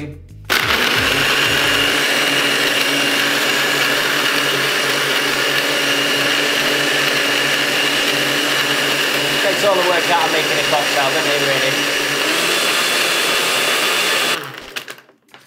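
A blender whirs loudly at high speed, then stops.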